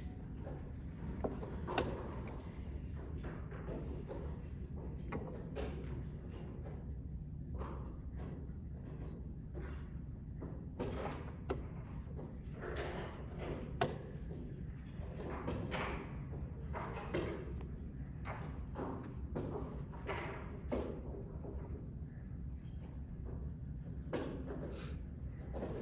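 A hand slaps a chess clock button.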